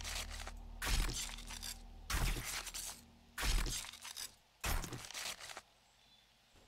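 A knife hacks into an animal carcass with heavy, wet thuds.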